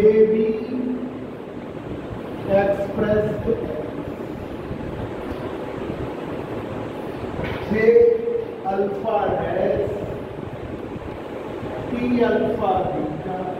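A man speaks calmly, like a lecturer.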